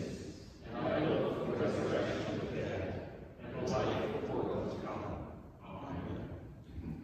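A choir sings in a large echoing hall.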